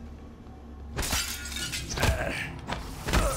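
Glass shatters loudly.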